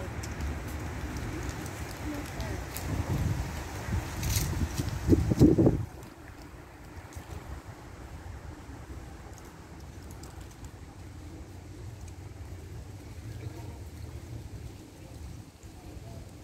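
Wind gusts outdoors and rustles tree leaves.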